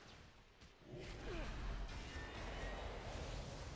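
Fantasy battle sound effects whoosh and clash.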